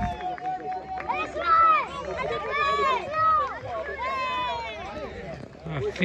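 Adults cheer and shout encouragement loudly.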